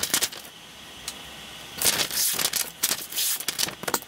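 A knife slices through paper.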